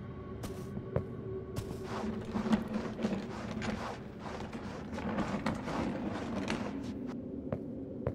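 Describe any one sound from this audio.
A wooden crate scrapes as it is pushed along the floor.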